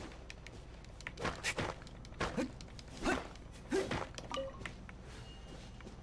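A sword whooshes through the air in quick swings.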